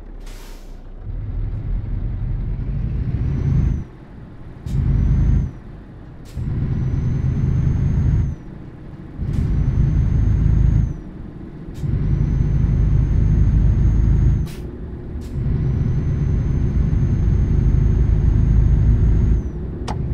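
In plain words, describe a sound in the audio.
A truck engine roars loudly as it accelerates, dropping briefly between gear changes.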